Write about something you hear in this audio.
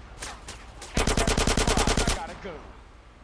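A submachine gun fires a rapid burst.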